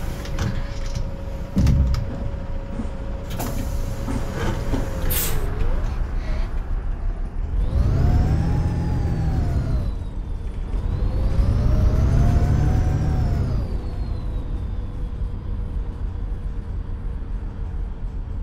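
A bus engine idles with a low, steady hum.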